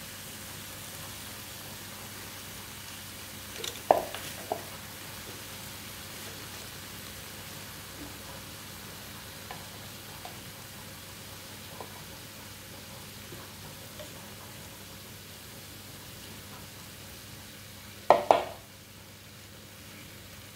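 Meat sizzles steadily on a hot grill.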